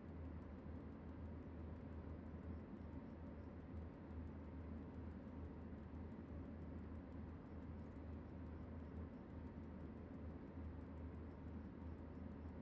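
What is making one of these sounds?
Train wheels clatter rhythmically over rail joints.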